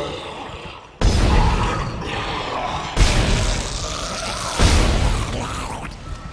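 A gun fires with loud, booming bursts.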